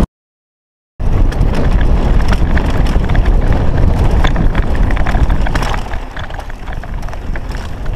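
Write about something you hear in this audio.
Bicycle tyres crunch and rattle over a dry dirt trail.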